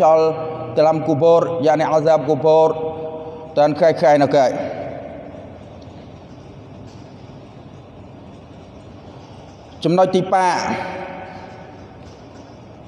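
A man chants through a microphone in a melodic voice, echoing in a large hall.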